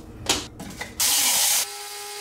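A small machine whirs loudly for a moment.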